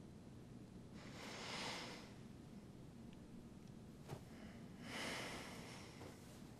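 A young man breathes deeply and slowly, close by.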